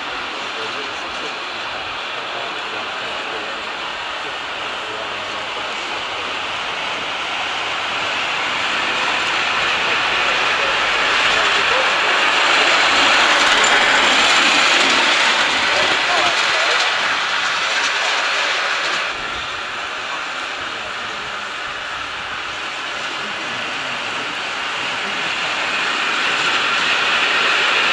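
A small steam locomotive hisses and chuffs steadily as it pulls along a track.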